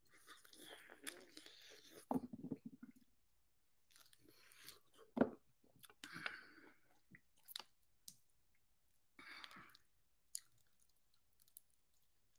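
A man crunches food while chewing.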